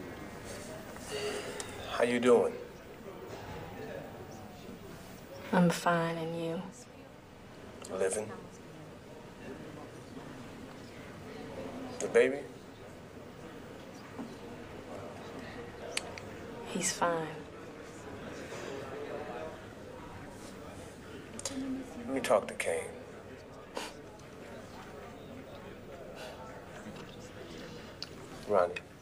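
A young woman speaks softly into a phone, close by.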